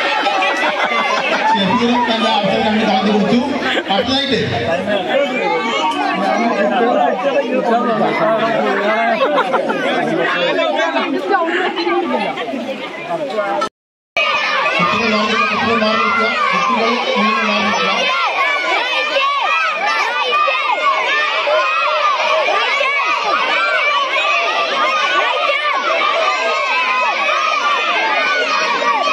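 A crowd of men and children chatters and shouts outdoors.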